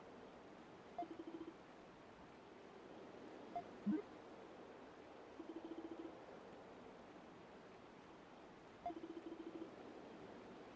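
Rapid soft electronic blips chatter in short bursts.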